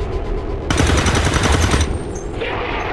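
A gun fires a rapid burst of shots close by.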